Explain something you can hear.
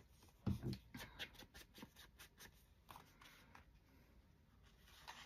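A foam applicator taps and dabs on paper.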